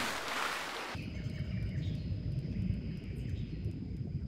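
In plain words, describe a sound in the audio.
Muffled underwater bubbling and rumbling.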